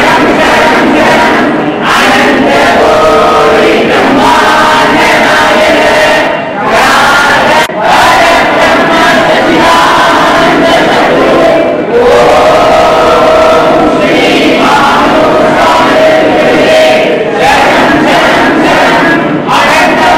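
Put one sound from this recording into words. A large crowd of men and women sings together in an echoing hall.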